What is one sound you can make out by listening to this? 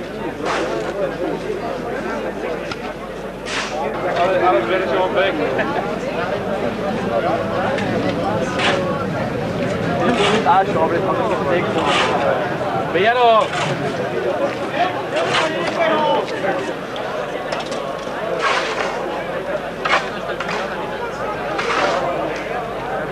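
A shovel scrapes and digs into loose soil.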